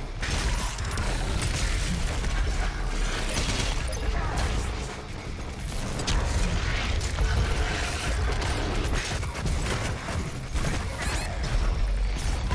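Shotgun blasts boom again and again.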